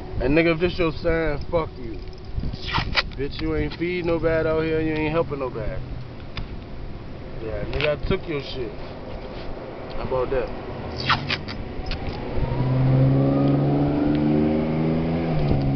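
Sticky tape peels off a roll and tears.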